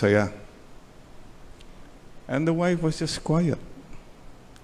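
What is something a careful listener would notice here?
An elderly man speaks calmly into a microphone, in short phrases.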